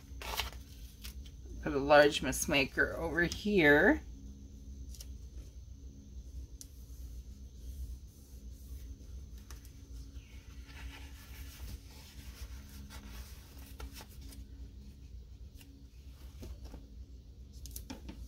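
Sticker paper rustles and crinkles softly.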